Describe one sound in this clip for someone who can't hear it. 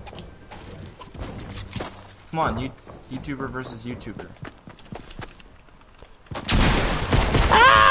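Gunfire cracks in short, quick bursts.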